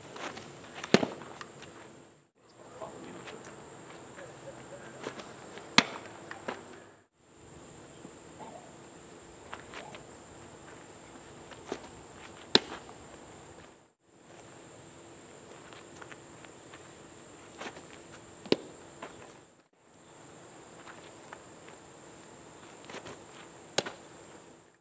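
A baseball smacks into a catcher's mitt with a sharp pop.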